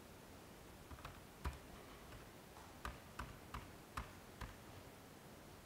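Computer keys click.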